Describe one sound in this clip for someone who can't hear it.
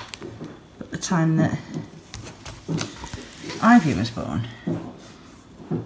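Stiff album pages rustle as they are turned by hand.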